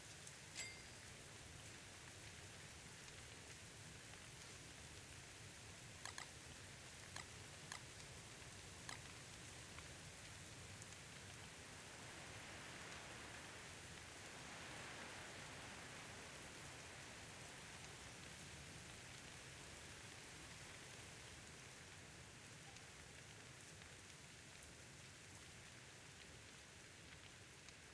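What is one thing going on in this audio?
Rain patters down steadily.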